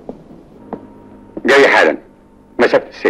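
A man talks calmly into a phone nearby.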